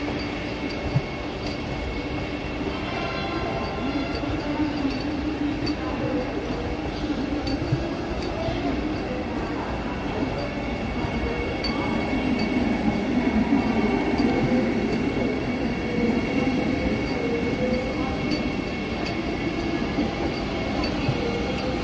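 An electric train hums steadily as it moves.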